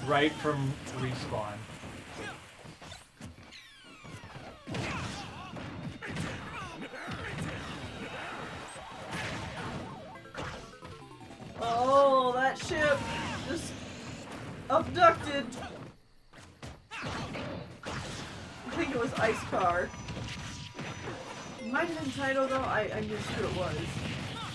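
Cartoonish characters shout short cries during the fight.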